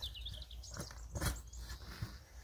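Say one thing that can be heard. A digging tool thuds into the soil.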